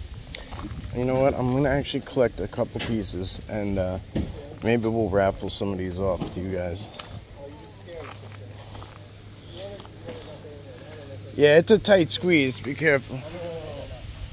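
A man speaks casually close by.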